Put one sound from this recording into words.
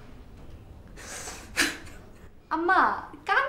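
A middle-aged woman laughs out loud close by.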